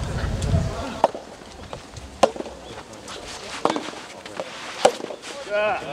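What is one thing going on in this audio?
A tennis ball is struck sharply by rackets back and forth.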